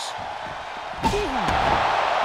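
A heavy body slams hard onto the floor.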